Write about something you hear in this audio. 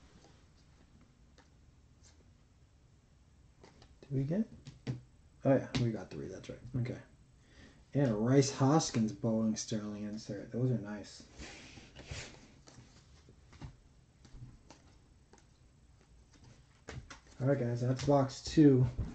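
Trading cards rustle and flick as they are handled.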